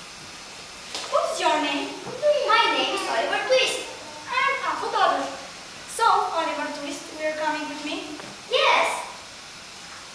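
Two children speak lines to each other in an echoing hall.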